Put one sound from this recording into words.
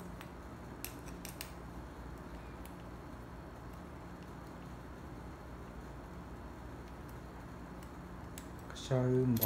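A hex key clicks and scrapes as it turns a small screw.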